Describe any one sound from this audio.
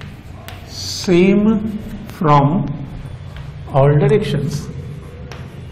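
A man speaks loudly and clearly.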